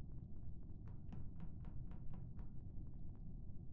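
Soft quick footsteps patter.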